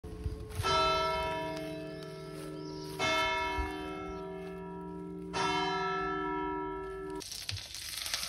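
Church bells toll loudly, ringing out after each stroke.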